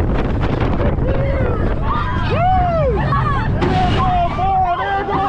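Riders scream and shriek loudly close by.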